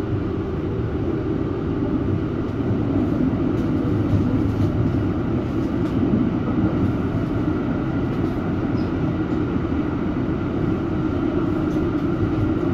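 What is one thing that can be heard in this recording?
A tram rumbles steadily along its tracks, heard from inside.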